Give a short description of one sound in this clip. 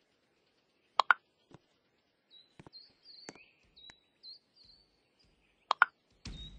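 Short sharp clicks sound as blocks snap into place.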